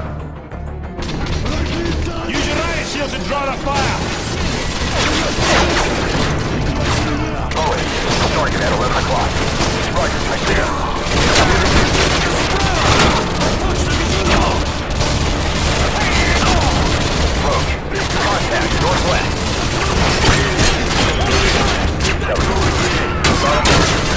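Rapid gunfire rattles and cracks loudly, echoing off hard walls.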